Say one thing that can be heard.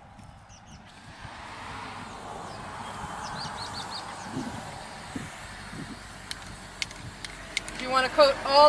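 A spray can hisses steadily.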